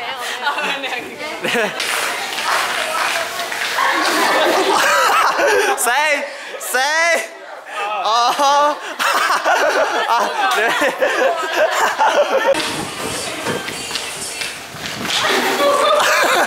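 Young girls laugh and chatter excitedly close by.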